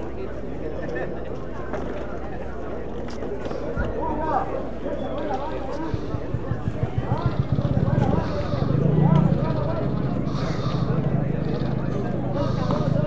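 A crowd of men and women chatter outdoors at a distance.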